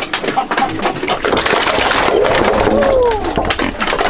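Pigs slurp and munch feed from a trough.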